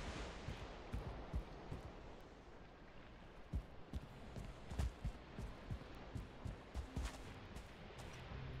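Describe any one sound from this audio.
Footsteps tap on hard stone in an echoing space.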